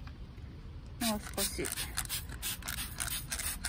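A spray bottle squirts liquid in short hissing bursts.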